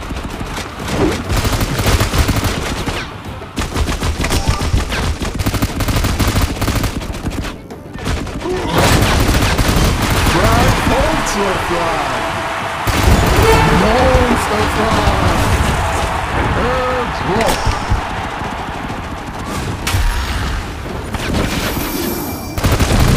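Gunfire from a game rattles in quick bursts.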